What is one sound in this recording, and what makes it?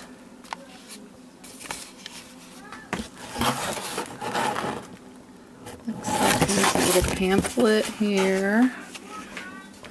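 Cardboard and plastic wrapping crinkle as they are handled.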